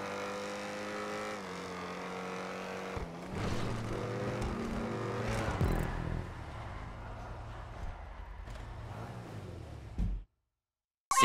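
A sports car engine roars at speed.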